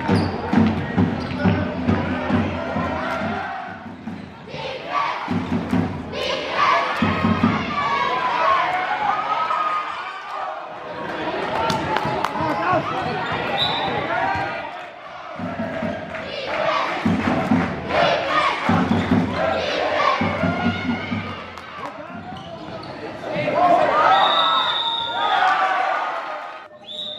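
Young women shout to each other across a large echoing sports hall.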